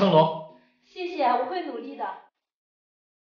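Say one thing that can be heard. A young woman answers warmly and close by.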